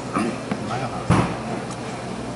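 A cup is set down on a table with a knock.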